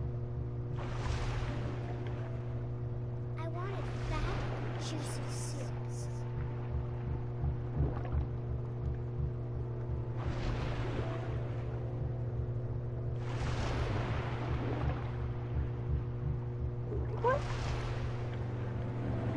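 Water rushes past in deep, repeated swooshes.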